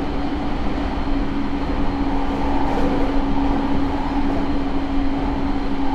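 A train rumbles steadily along the tracks, heard from inside a carriage with a steady low hum.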